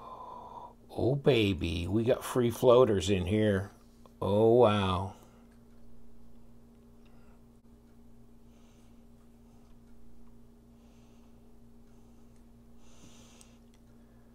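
Small metal knife parts click and clink as they are handled.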